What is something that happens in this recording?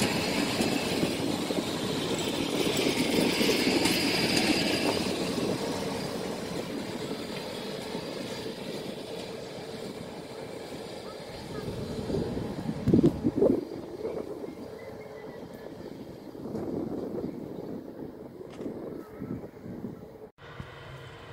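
A passenger train rumbles away along the tracks and slowly fades.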